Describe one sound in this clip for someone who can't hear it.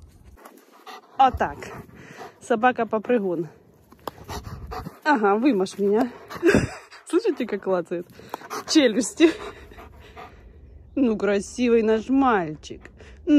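A dog yips and whines excitedly close by.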